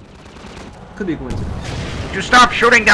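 A rocket whooshes through the air.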